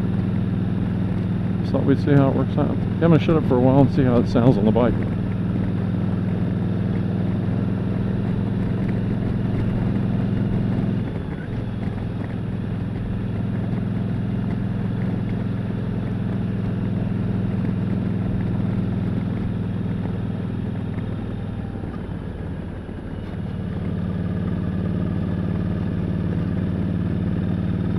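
Wind rushes past a moving rider.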